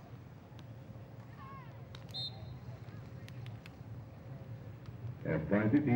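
A volleyball is hit with dull thuds.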